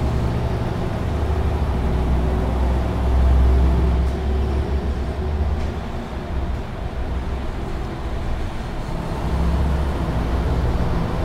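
A truck engine drones steadily as the truck drives along.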